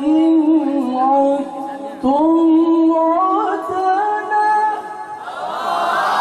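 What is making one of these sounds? A young man chants in a long, wavering melody through a microphone and loudspeakers.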